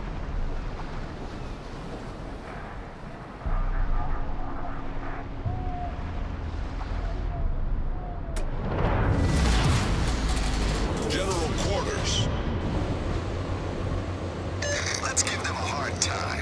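Waves wash and splash against a ship's hull.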